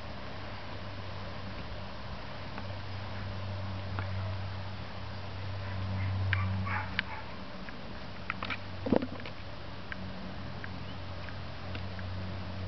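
A dog's paws thud on grass as it runs.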